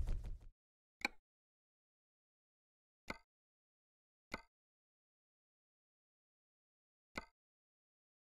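Short interface clicks sound a few times.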